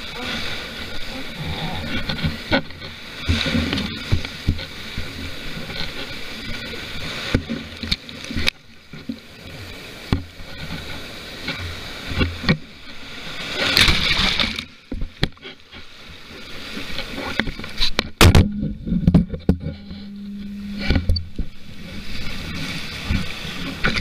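Water rushes and splashes against a windsurf board.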